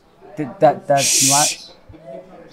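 A young man hisses a loud shushing sound.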